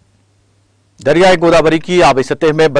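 A man reads out calmly and clearly, close to a microphone.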